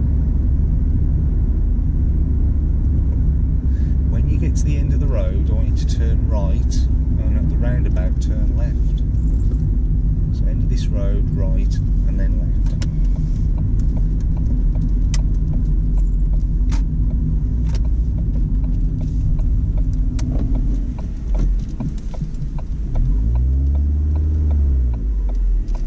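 Tyres and wind rush steadily as a car drives.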